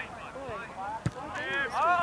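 A football is kicked with a thud outdoors.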